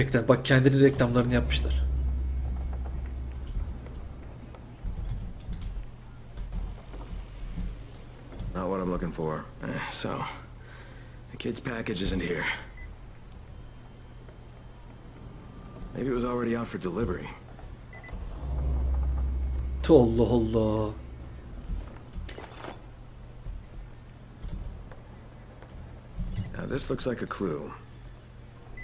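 A young man talks calmly into a microphone, close by.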